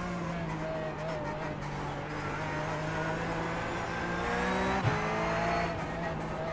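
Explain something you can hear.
A racing car engine hums steadily and rises in pitch as it speeds up.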